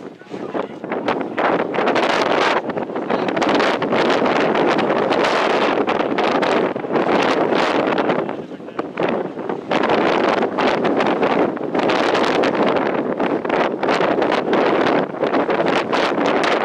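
Strong wind rumbles and buffets outdoors throughout.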